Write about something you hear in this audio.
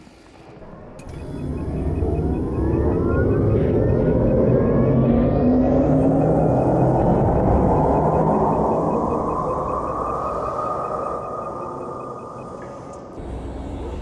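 A spaceship engine rumbles and roars as it powers up, then slowly fades.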